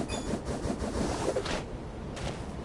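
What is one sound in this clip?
A spinning attack whooshes in a swirl of wind.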